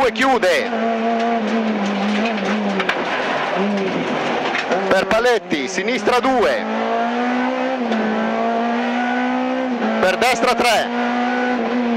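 A rally car engine blips sharply up and down as gears drop before bends.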